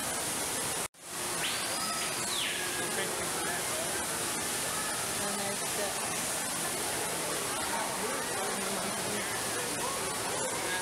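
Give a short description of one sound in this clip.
Water rushes and splashes steadily nearby.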